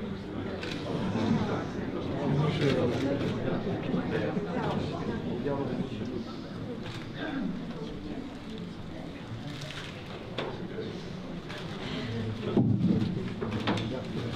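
A crowd of adults murmurs and chatters in a large room.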